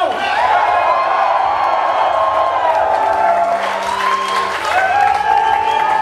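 Several men clap their hands.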